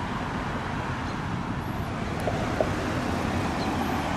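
A van drives past on the road.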